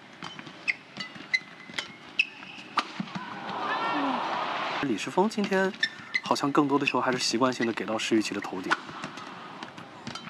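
Badminton rackets smack a shuttlecock back and forth in a quick rally.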